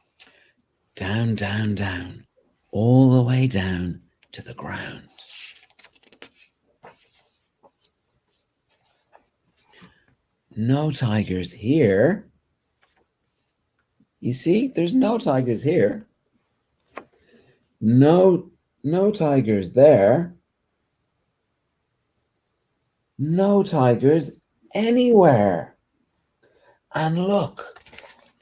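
A man reads aloud with lively expression, close by.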